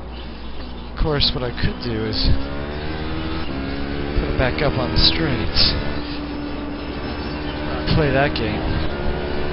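A racing engine revs up and snaps through gear changes with sharp pops.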